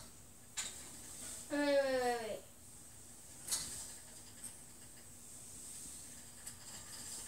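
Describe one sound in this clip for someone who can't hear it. An exercise bike's flywheel whirs softly.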